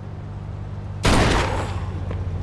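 A pistol fires a loud shot.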